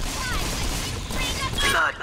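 A fiery explosion bursts with a roar.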